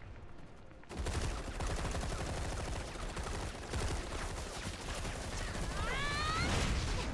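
Guns fire in rapid bursts amid a loud battle.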